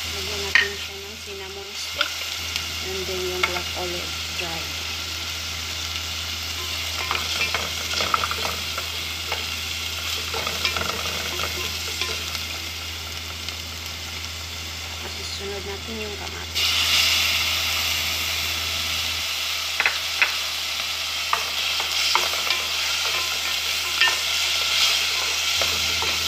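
A spatula scrapes and taps against a metal pot.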